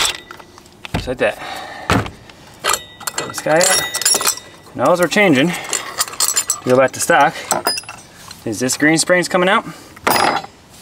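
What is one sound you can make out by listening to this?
Metal parts clink and knock as they are handled.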